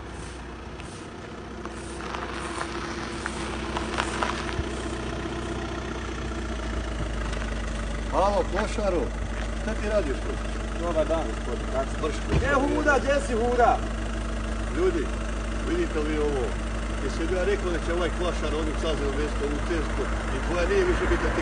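A car engine approaches and idles nearby.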